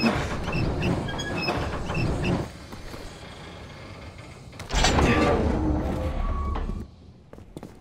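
A heavy metal valve wheel creaks and grinds as it is turned.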